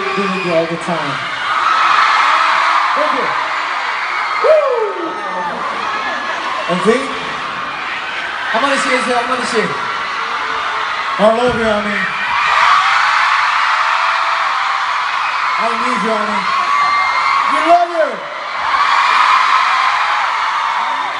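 A large crowd screams and cheers loudly in a big echoing arena.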